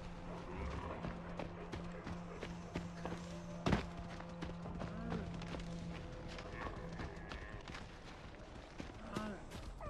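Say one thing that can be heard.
Footsteps rustle through tall grass and ferns.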